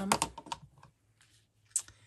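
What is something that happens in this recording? Paper rustles as hands press it flat.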